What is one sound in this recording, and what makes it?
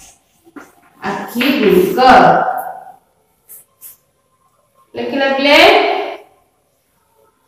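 A young woman speaks loudly and clearly in short bursts.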